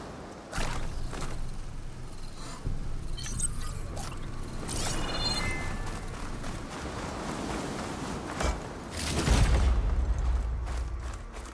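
Footsteps crunch on sand.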